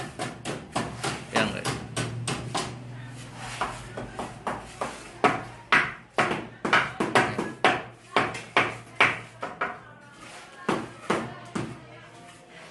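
Sharp hammer blows knock repeatedly against a masonry wall.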